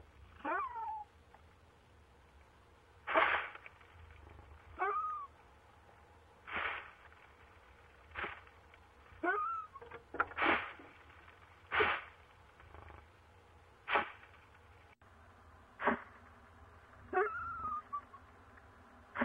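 An owl makes short chirping calls that slide down in pitch.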